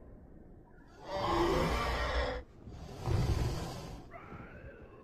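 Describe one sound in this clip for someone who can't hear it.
A large creature lets out a loud, rough roar.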